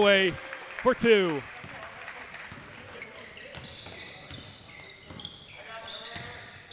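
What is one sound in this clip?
Sneakers squeak sharply on a hard court floor in an echoing gym.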